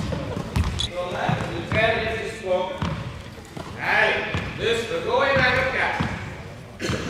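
Young players shout to each other in a large echoing hall.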